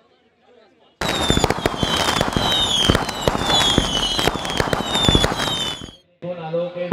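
Fireworks crackle and hiss sharply.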